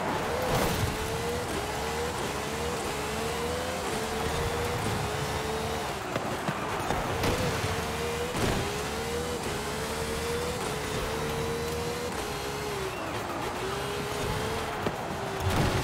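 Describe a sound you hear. A racing car engine roars, rising and dropping as it shifts through gears.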